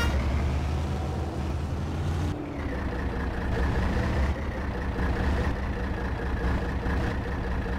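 A heavy engine rumbles steadily and low.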